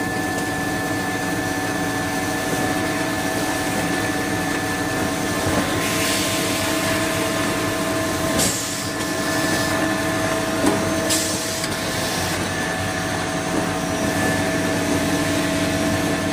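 A machine hums and whirs steadily.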